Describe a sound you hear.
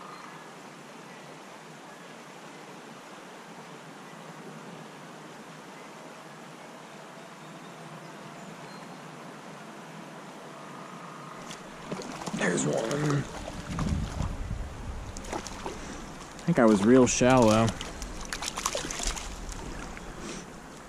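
A stream flows and burbles gently.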